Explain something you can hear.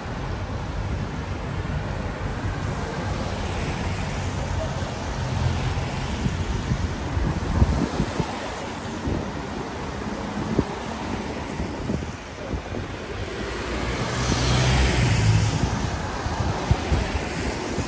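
Cars drive past on a wet street.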